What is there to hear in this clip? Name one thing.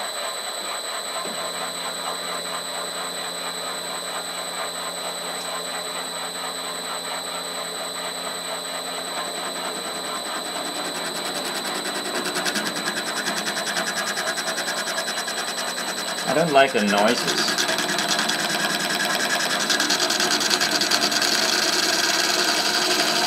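A spindle motor whines steadily with a high pitch.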